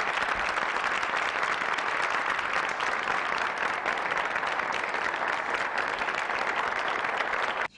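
An audience claps steadily in a large hall.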